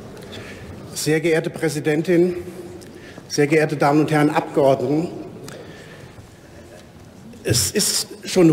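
A man speaks firmly through a microphone in a large echoing hall.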